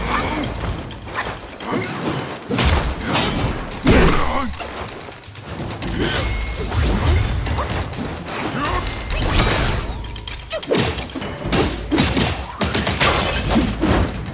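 A staff strikes a beast with heavy thuds.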